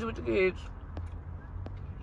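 A fork scrapes in a plastic salad bowl.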